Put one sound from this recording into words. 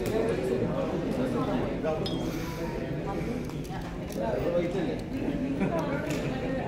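A middle-aged woman talks animatedly up close.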